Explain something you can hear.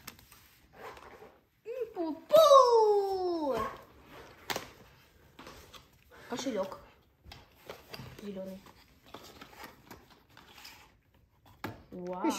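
Cardboard and plastic packaging rustle and crinkle.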